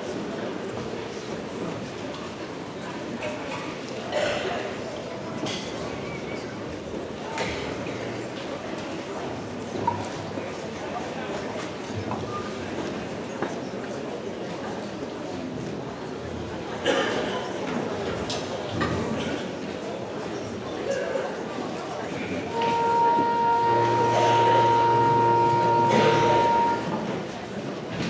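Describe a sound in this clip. A large band plays music in an echoing hall.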